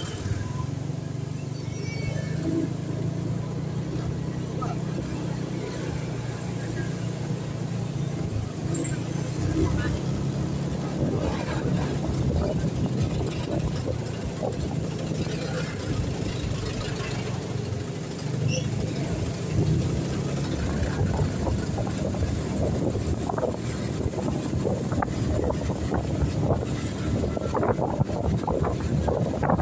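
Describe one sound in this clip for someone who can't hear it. Wind rushes against the microphone outdoors.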